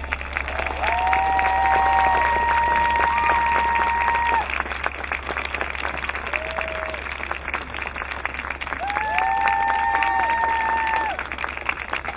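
A marching band plays loud sustained brass chords outdoors.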